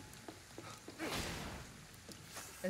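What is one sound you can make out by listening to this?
Glass shatters in a sudden burst.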